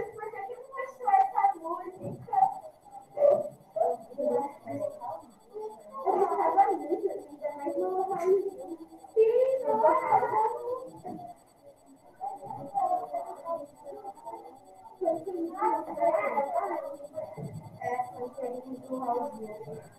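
A woman talks steadily and calmly, heard close through a microphone.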